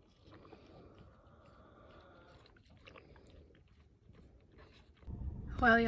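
A calf sucks noisily on a milk bottle.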